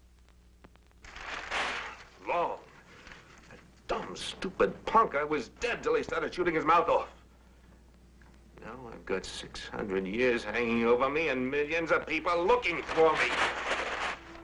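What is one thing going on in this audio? A man speaks with anguish, close by.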